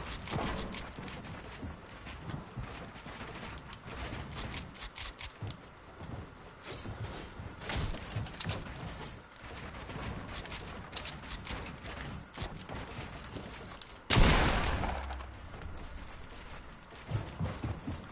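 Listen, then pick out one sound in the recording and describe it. Building pieces snap into place with quick, sharp clicks.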